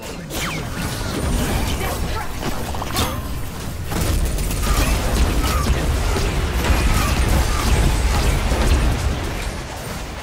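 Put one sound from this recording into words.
Magic blasts and spell effects crackle and whoosh in a fast video game battle.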